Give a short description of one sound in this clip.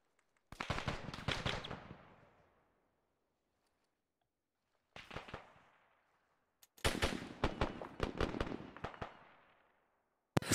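Rapid gunshots ring out in short bursts, with echoing tails.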